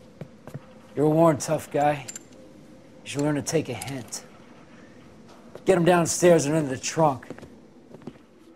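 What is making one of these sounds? A man speaks menacingly, in a low voice, close by.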